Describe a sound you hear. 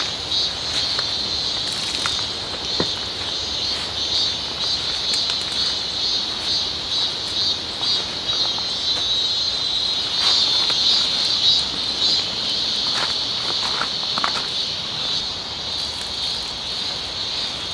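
A tarp rustles and crinkles as it is tugged.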